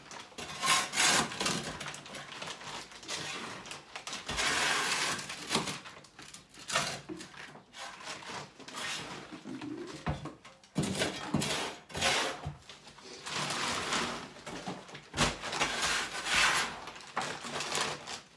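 Rubble and dust scrape and rustle in a plastic sack.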